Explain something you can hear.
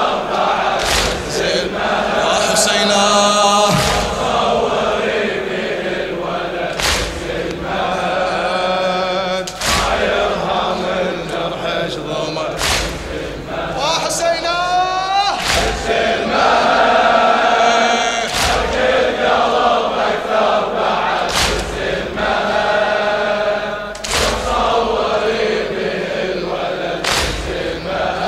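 A crowd beats their chests in slow, heavy unison strikes.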